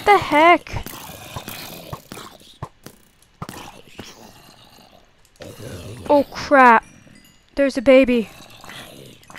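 Zombies groan with low, wavering moans.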